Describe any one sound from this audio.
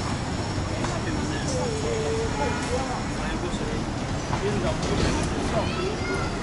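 Adult passers-by talk briefly in passing.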